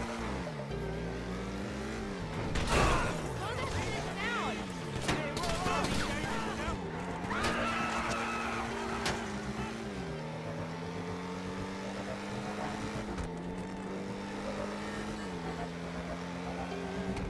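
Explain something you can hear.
A car engine drones, its pitch rising and dropping as it speeds up and shifts.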